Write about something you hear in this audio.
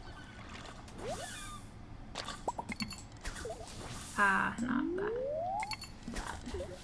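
A game's jingle chimes and rises in pitch as a fish is caught.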